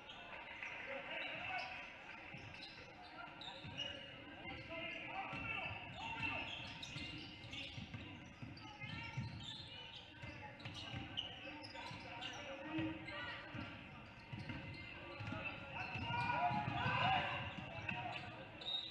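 A crowd cheers and murmurs.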